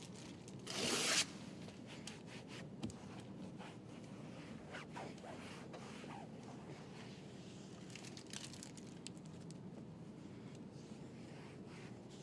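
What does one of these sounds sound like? A cloth wipes and rubs against a car door.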